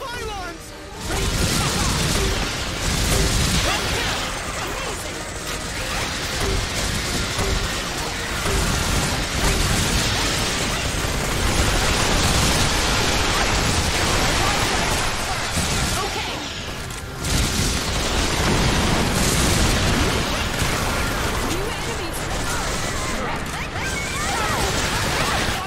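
Rapid gunfire rattles without pause.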